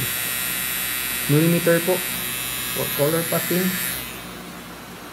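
A tattoo machine buzzes steadily.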